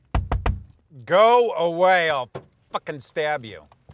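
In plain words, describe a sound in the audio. A man outside a car calls out loudly, muffled through the glass.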